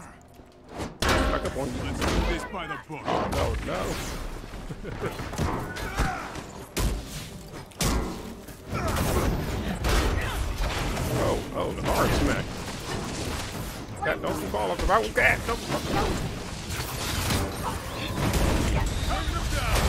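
Blows, blasts and impacts crash loudly in a fight.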